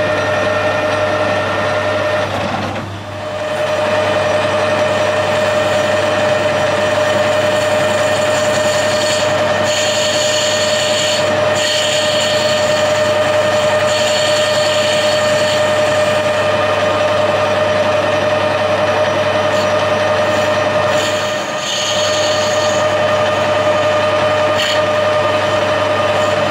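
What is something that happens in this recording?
A metal lathe hums steadily as it spins.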